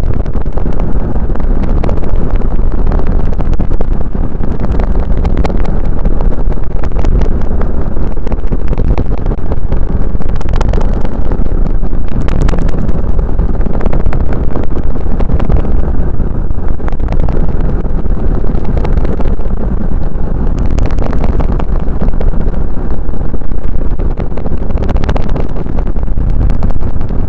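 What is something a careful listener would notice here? Loud wind rumble and road noise roar steadily from a moving car.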